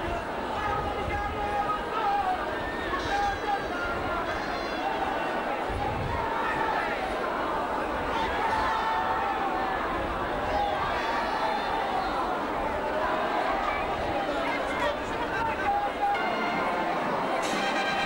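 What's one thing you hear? A large outdoor crowd murmurs and chatters.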